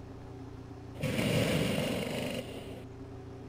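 Pneumatic wheel guns whir in a short burst.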